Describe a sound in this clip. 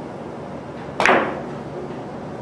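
A cue strikes a billiard ball with a sharp knock.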